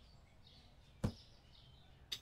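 A cardboard box is set down with a thud.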